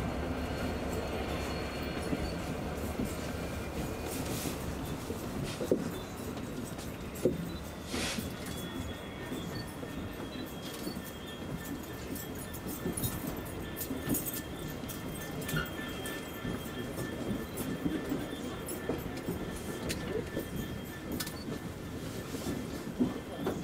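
A crowd murmurs with many voices nearby.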